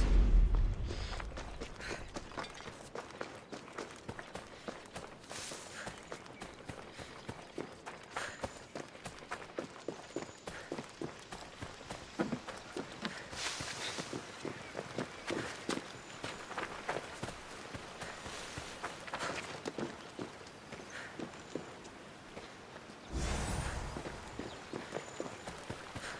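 Footsteps crunch steadily over grass and stones.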